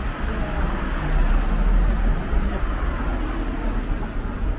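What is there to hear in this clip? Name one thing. A car drives past close by on the street.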